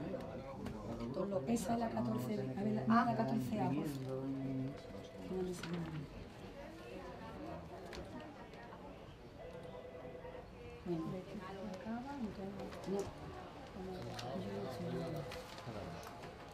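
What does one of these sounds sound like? Papers rustle as a woman handles them.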